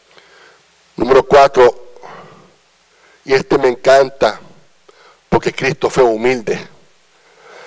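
A middle-aged man speaks into a microphone with animation, heard through a loudspeaker in an echoing hall.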